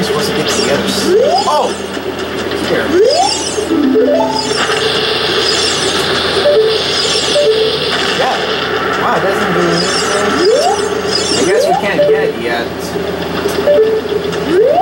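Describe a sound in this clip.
Short rising chiming sound effects ring out now and then.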